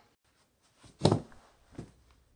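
A body thuds onto a carpeted floor.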